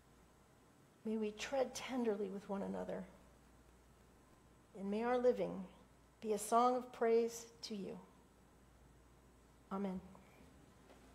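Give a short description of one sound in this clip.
An older woman speaks calmly into a microphone, in a large echoing room.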